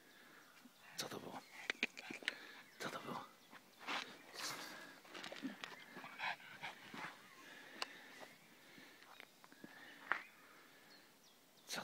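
A pug snuffles and snorts.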